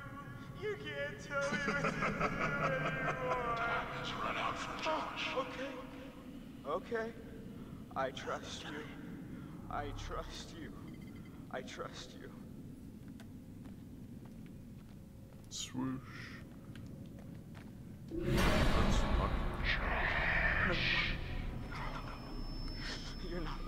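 A young man speaks in a strained, upset voice.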